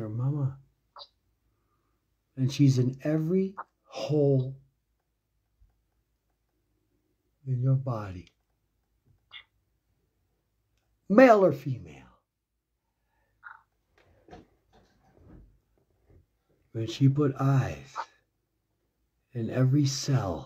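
A man talks with animation close to a phone microphone, in bursts with pauses.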